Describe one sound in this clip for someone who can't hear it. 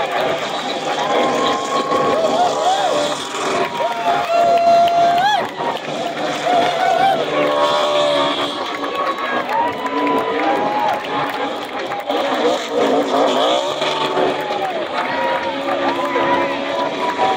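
Tyres squeal as a car spins on the track.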